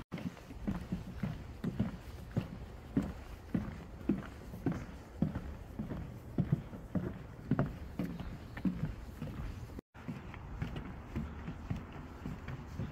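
Footsteps thud steadily on a wooden boardwalk.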